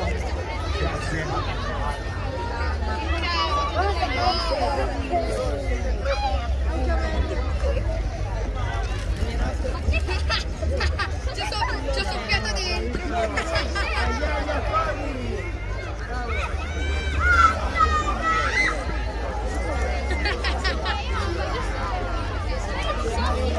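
Children shout and call out outdoors during a game.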